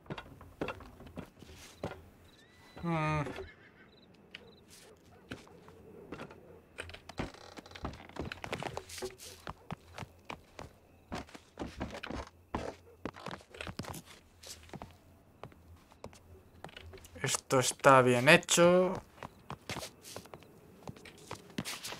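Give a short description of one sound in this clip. Footsteps tap on a rooftop.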